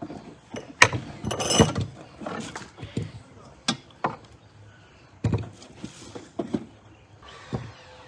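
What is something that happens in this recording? Strawberries thump into a glass teapot.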